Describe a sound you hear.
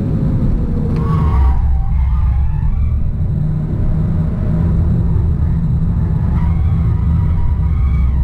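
Tyres squeal through a fast corner.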